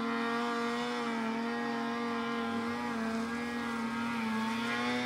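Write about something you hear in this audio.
A snowmobile engine drones steadily.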